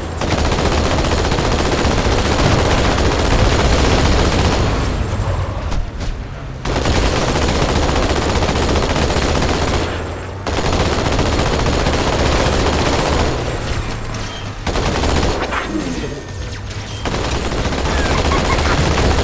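A vehicle-mounted machine gun fires in rapid, sustained bursts.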